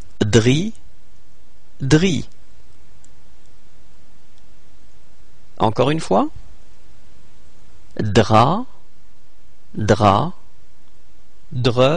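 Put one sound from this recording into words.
A man reads out short syllables clearly, one at a time, with pauses between them.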